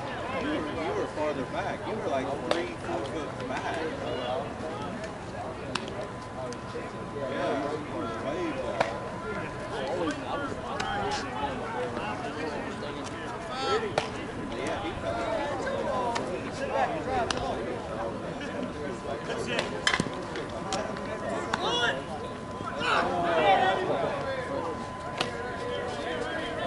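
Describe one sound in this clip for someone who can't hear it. Men talk and call out across an open field.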